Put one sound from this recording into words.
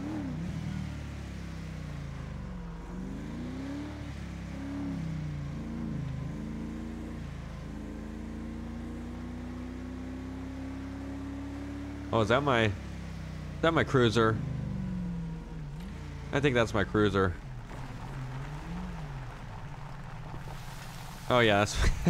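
A car engine hums and revs as a car drives along.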